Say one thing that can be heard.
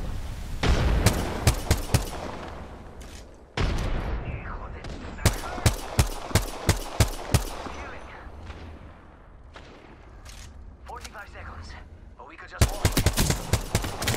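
A rifle fires loud sharp shots, one after another.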